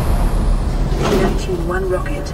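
A lever clunks as it is pulled down.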